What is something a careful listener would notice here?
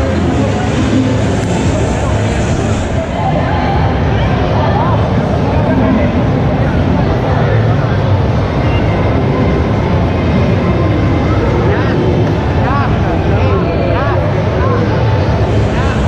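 A crowd chatters loudly in a large echoing hall.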